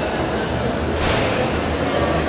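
A horse's hooves knock against a wooden rail.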